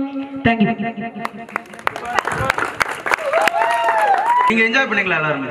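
A group of young men clap their hands.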